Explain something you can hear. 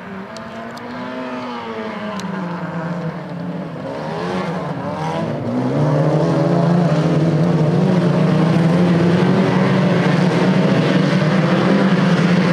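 Several racing car engines roar and rev loudly nearby.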